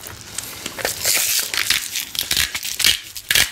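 A pepper mill grinds with a gritty rasp.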